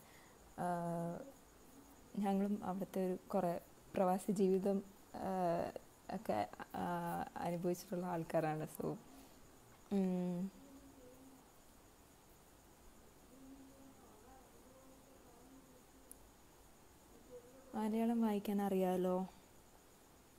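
A young woman talks calmly and close through a microphone, with pauses.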